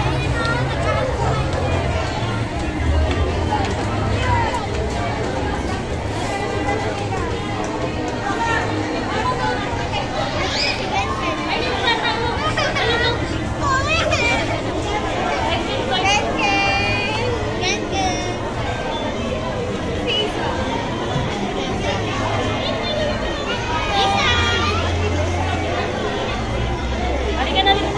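A crowd of adults and children chatters indoors.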